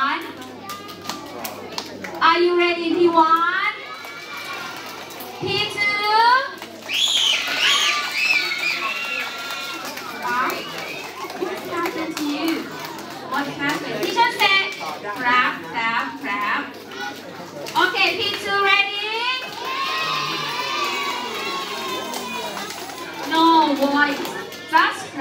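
Many children chatter and call out together.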